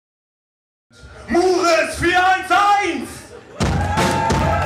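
A man sings loudly into a microphone.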